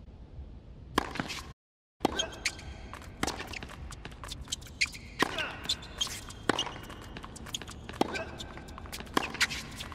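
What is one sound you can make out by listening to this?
A tennis ball is struck sharply back and forth with rackets.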